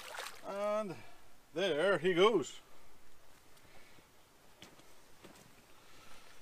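Water laps gently against a concrete edge.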